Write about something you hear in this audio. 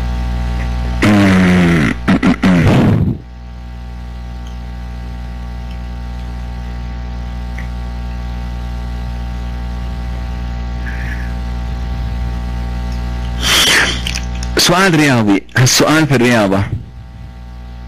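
A man speaks briefly through a microphone.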